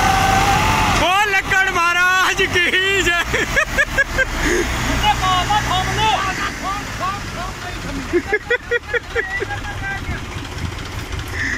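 Men shout loudly outdoors.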